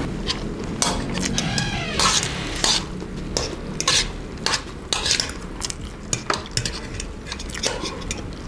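Metal spoons scrape and clink against a metal pan.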